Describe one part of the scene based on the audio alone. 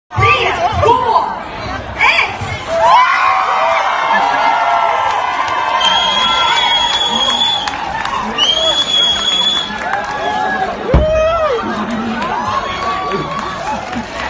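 A crowd of men and women cheers and shouts loudly.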